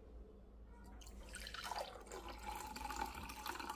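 Water pours into a glass, splashing and gurgling.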